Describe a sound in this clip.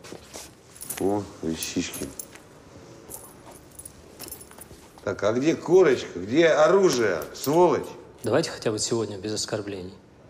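An elderly man speaks loudly and with animation, close by.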